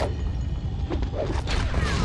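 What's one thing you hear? A heavy stone boulder rolls and rumbles along the ground.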